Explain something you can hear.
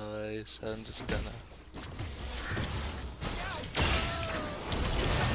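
Fantasy game spell effects whoosh and crackle in quick bursts.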